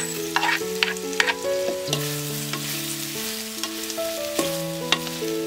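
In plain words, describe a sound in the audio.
A spoon scrapes and clatters against a clay pot while stirring.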